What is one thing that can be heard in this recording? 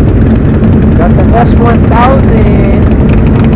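A motorcycle engine revs sharply nearby.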